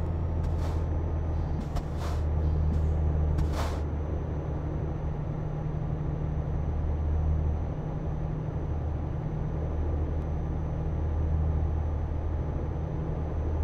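Tyres roll along a road with a steady rumble.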